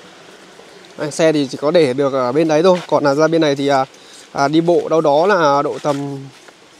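A young man speaks calmly close to a microphone.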